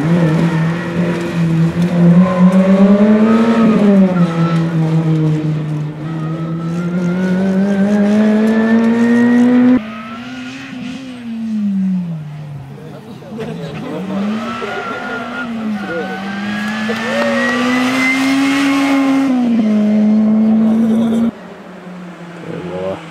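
A racing car engine roars loudly, its pitch rising and falling as it revs and changes gear.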